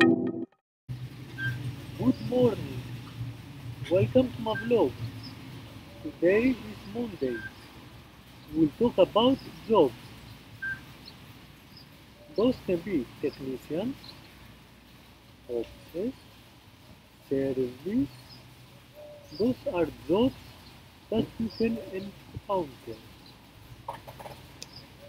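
A man speaks calmly and close up.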